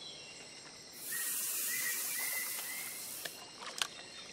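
A fishing line whizzes out as a rod casts.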